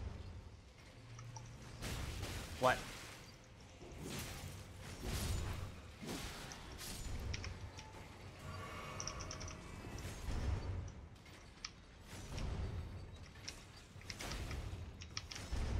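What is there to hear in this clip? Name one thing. Armoured footsteps clank on stone floors.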